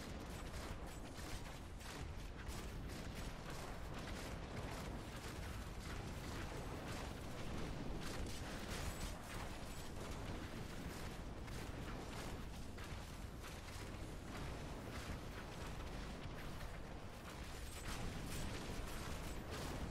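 Magic beams hum and zap steadily.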